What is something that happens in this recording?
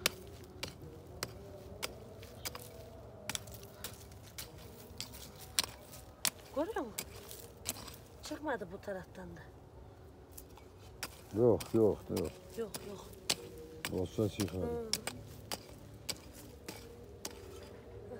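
A small hoe scrapes and chops into dry, stony soil.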